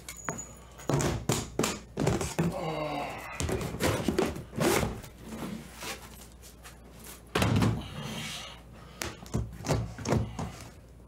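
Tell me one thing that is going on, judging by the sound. Metal latches on a case click open.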